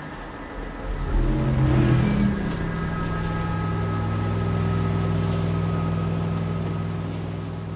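A speedboat engine roars across the water.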